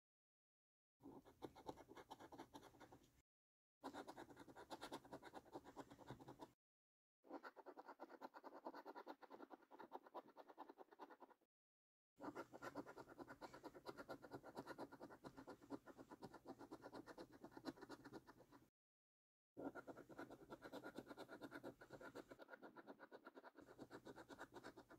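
A fingernail scratches rapidly at a scratch card, in bursts with short pauses.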